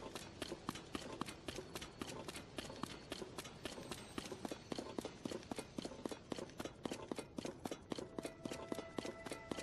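Quick footsteps run over dry ground.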